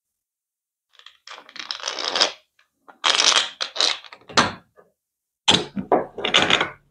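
A threaded metal rod rattles and scrapes against metal.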